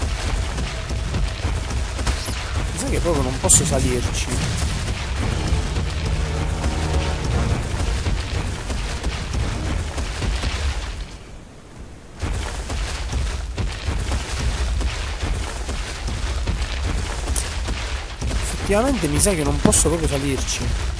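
A large animal's feet thud heavily on the ground as it runs.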